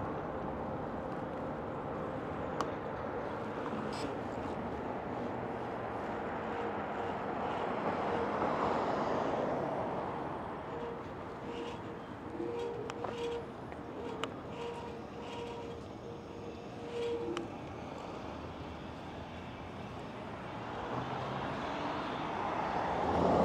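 Wind rushes over the microphone as an electric bike rides along outdoors.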